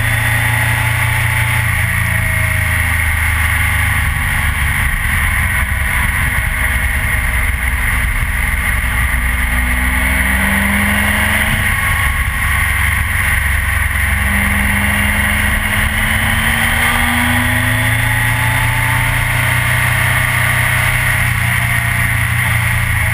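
A motorcycle engine hums steadily up close, rising and falling in pitch.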